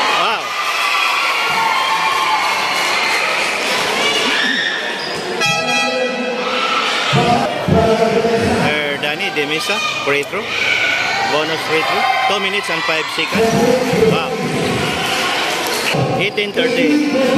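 A crowd of spectators cheers and chatters in a large echoing hall.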